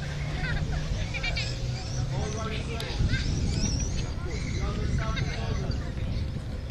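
A crowd of men and women chatters outdoors at a distance.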